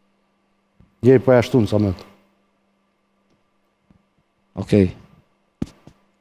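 A young man speaks in short bursts into a microphone.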